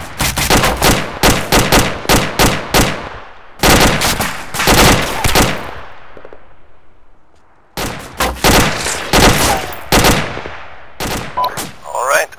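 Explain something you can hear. Bursts of rapid gunfire ring out and echo across open ground.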